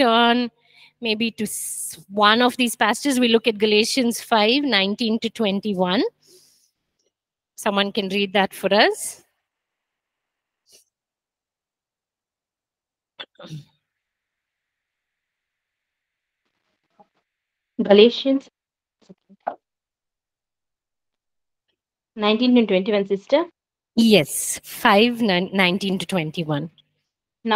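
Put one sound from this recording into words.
A woman speaks calmly into a microphone, heard through an online call.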